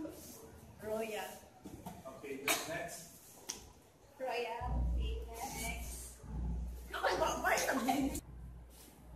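A young woman giggles loudly close by.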